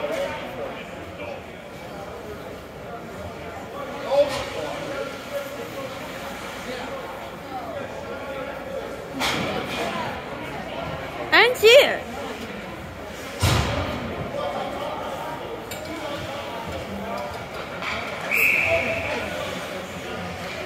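Spectators chatter and cheer in the background.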